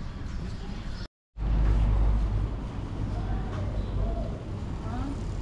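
A motor scooter hums past on cobblestones.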